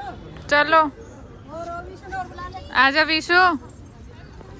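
A woman calls out loudly close by.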